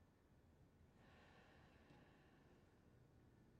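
A second man answers quietly and calmly.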